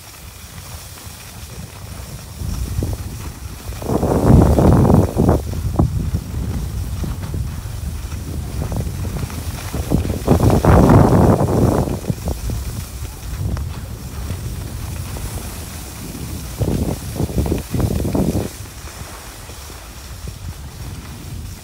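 Skis scrape and hiss over packed snow.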